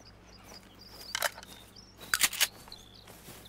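Shells click as they are loaded into a shotgun.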